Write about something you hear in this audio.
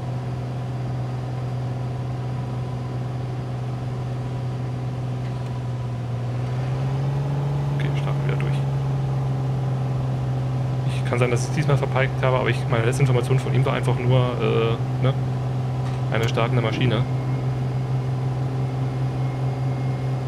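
A small propeller plane's engine drones steadily and rises in pitch during the takeoff run.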